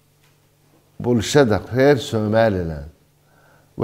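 An older man speaks calmly and firmly into a microphone.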